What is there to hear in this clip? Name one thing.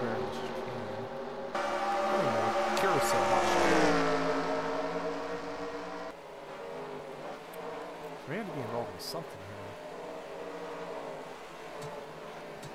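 Racing car engines roar and whine, shifting pitch as the cars brake and accelerate.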